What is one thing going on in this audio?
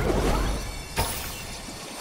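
A heavy blow lands with a sharp thud.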